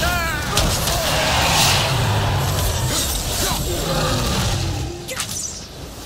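A large creature roars and growls loudly.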